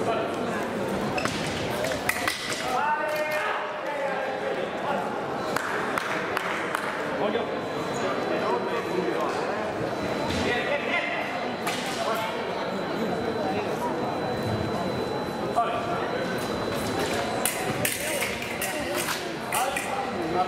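Fencers' shoes squeak and stamp on the floor.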